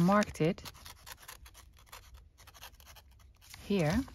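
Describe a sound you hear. A craft knife scrapes as it scores paper.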